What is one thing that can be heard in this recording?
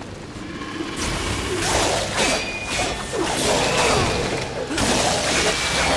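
Blades clash and slash in a fight.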